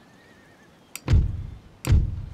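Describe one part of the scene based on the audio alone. A game menu opens with a deep thud.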